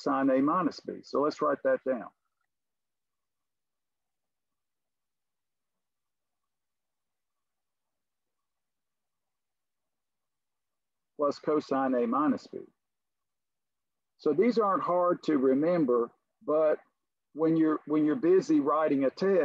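A man speaks calmly through a microphone, heard as if over an online call.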